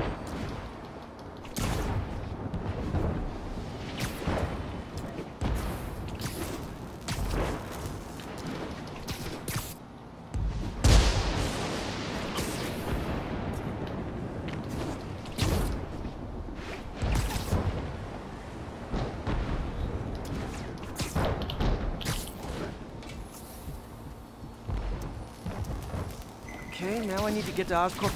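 Wind rushes past loudly.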